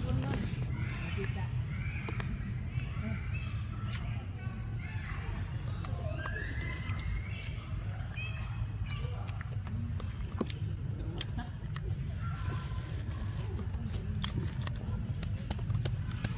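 A monkey chews food with soft smacking sounds.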